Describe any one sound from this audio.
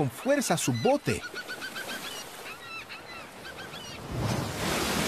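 A seagull squawks loudly.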